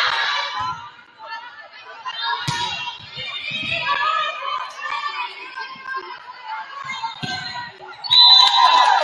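Young women players call out to each other.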